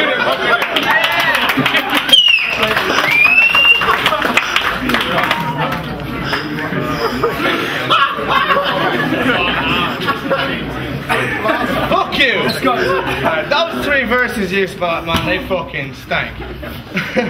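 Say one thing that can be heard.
A crowd cheers and shouts loudly in an echoing room.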